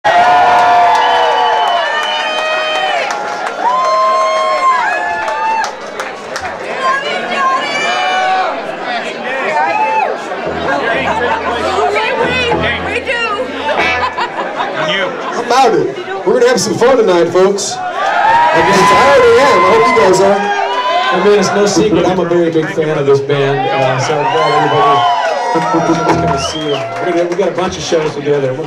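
Electric guitars play a loud, bending rock solo.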